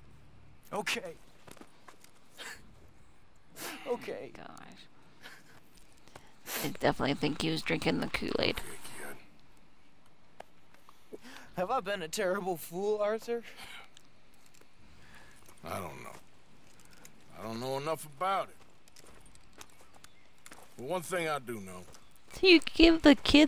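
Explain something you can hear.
A young man speaks quietly and emotionally, close by.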